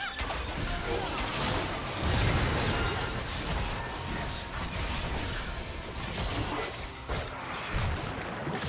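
Spell effects whoosh and crackle in a fast battle.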